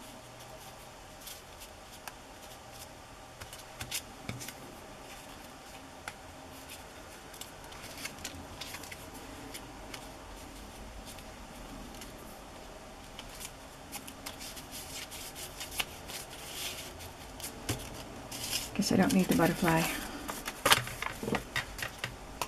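Paper rustles and crinkles under fingers.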